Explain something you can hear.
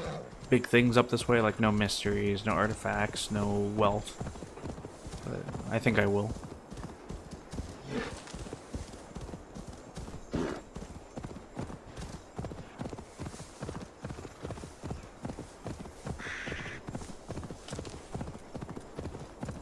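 A horse's hooves thud steadily on snowy ground.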